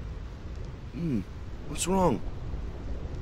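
A man asks a short puzzled question.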